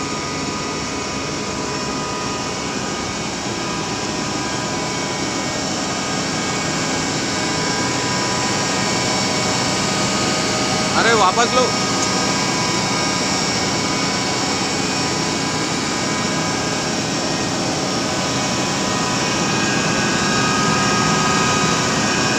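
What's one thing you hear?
A truck's machinery runs with a steady loud hum and whine.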